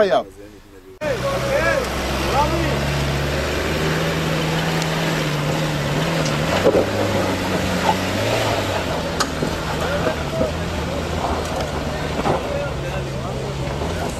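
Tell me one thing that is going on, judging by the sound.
An off-road vehicle's engine labours steadily as it climbs.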